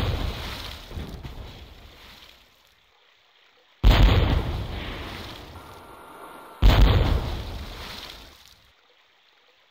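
A ship's cannons fire with heavy booms that rumble away.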